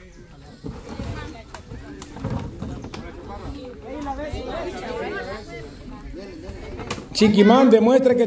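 A group of children chatter and shout outdoors.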